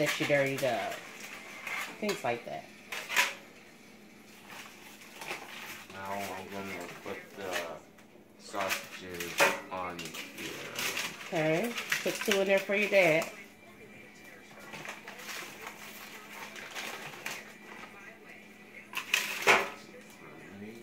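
Aluminium foil crinkles and rustles as it is handled.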